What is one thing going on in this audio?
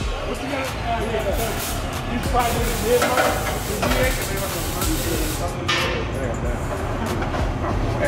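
Metal pipes clank against each other.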